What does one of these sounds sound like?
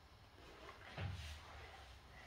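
A thud sounds as a young child drops onto the floor.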